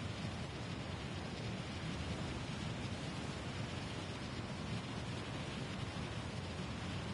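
Wind rushes loudly and steadily past during a fast fall.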